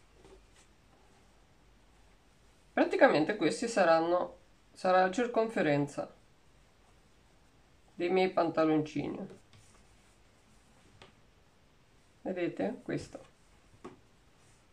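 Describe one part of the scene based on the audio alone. Soft fabric rustles as it is folded.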